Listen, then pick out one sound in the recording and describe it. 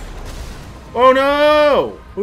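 A man shouts loudly into a close microphone.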